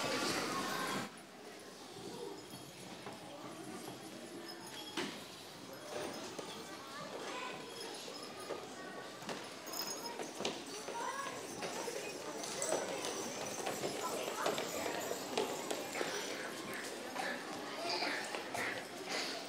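Children chatter and murmur in a large echoing hall.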